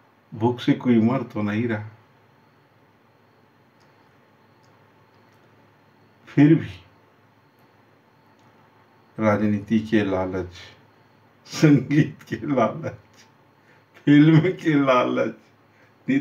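A middle-aged man talks close up, in short bursts with pauses.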